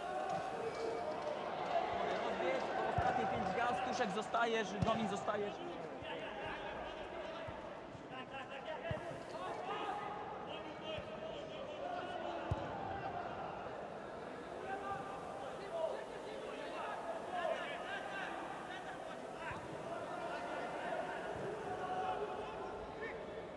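Men shout to each other far off across an open pitch.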